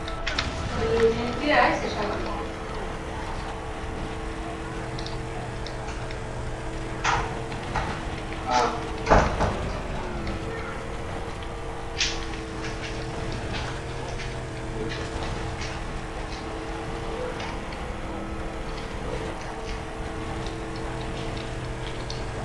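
A vehicle bumps and rattles over a rough dirt track.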